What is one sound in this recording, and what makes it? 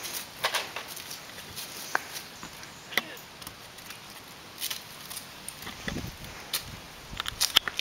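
Shoes scrape and knock against a brick wall as someone climbs it.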